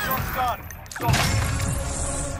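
A short victory tune plays in a video game.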